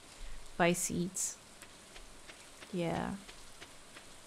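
A young woman speaks briefly and with animation into a microphone nearby.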